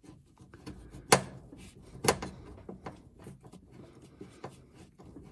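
A screwdriver clicks and taps against a metal part.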